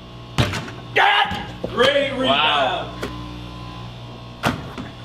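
A basketball bangs against a backboard and rim.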